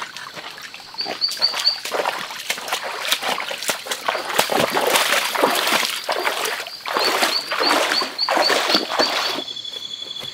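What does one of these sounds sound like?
Footsteps splash and slosh through shallow water.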